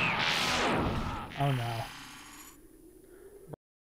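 A crackling burst of electricity buzzes.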